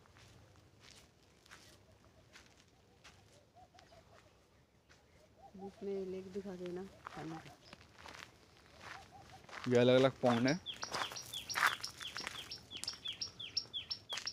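Footsteps crunch on a dirt path.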